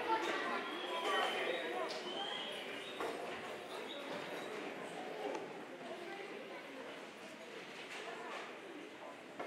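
Young children chatter and call out on a stage, heard in a large echoing hall.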